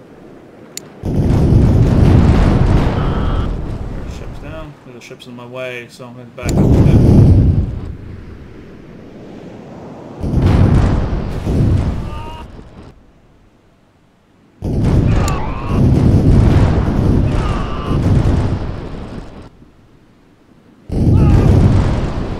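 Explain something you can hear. Cannons boom in heavy, rumbling volleys.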